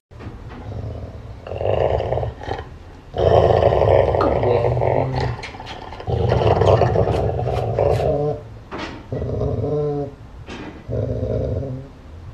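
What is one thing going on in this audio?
A young man talks close by in an affectionate voice.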